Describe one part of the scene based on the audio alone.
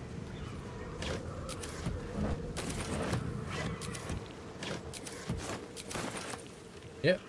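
A wooden chest creaks and thuds open.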